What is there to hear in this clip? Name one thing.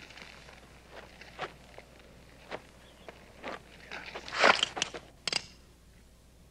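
Horse hooves clop on stony ground.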